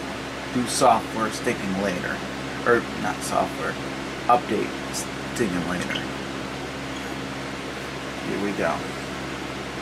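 A man speaks casually, close to a microphone.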